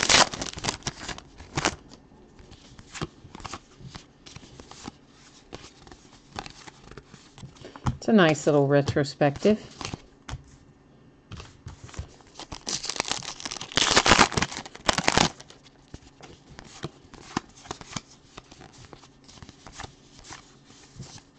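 Cards flick and slap softly as they are shuffled by hand.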